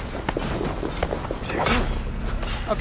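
A blade stabs into a body with a wet thud.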